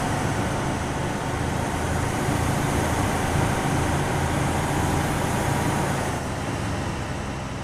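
Heavy tyres roll and hum on asphalt.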